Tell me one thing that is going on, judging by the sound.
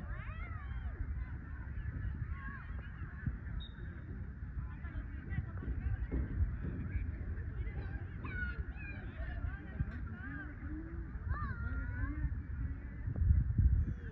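Young women call out to each other across an open field.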